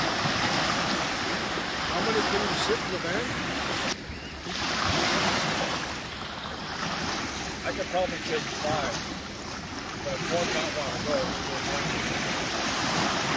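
Small waves wash steadily onto a sandy shore.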